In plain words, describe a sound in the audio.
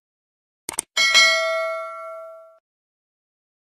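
A bell chimes brightly and rings out.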